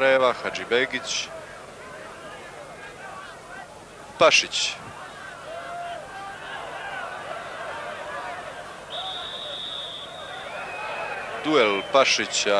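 A large crowd murmurs in a stadium.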